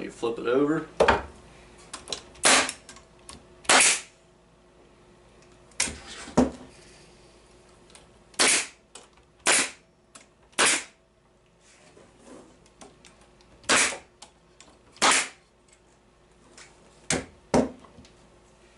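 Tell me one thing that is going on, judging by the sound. A pneumatic nail gun fires nails with sharp, hissing bangs, one at a time.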